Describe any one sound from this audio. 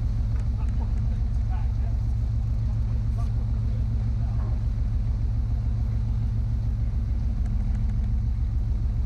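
A boat engine idles with a steady low rumble.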